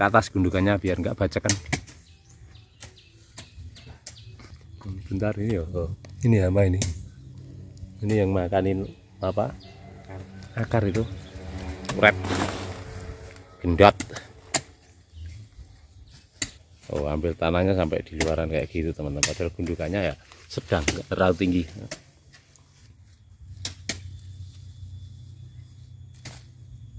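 Hoes thud and scrape into dry soil.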